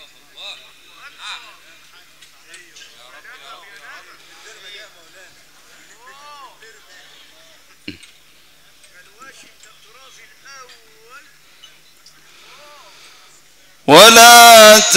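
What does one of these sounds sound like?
A large crowd of men murmurs and talks quietly.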